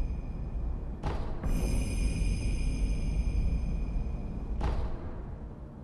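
A soft whooshing menu sound plays twice.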